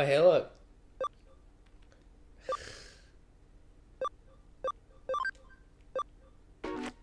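Short electronic menu beeps sound as selections change.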